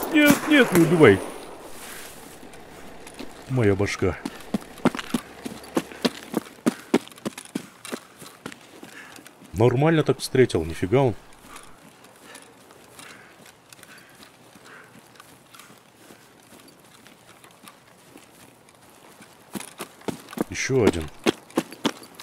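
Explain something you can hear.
Footsteps crunch through grass and dirt at a steady walking pace.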